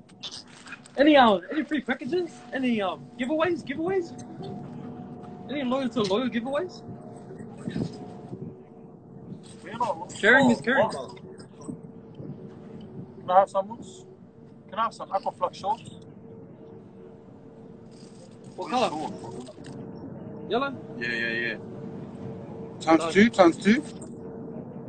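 A young man talks casually into a phone microphone, in bursts with pauses.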